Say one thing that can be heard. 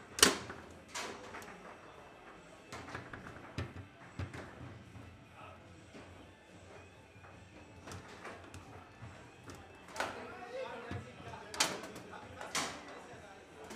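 Foosball figures knock sharply against a ball and a table, on and off.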